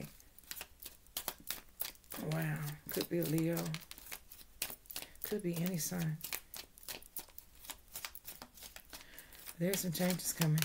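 Playing cards riffle and flick in quick bursts.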